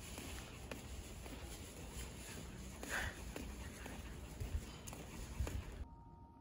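A small dog's claws tap lightly on pavement as it trots.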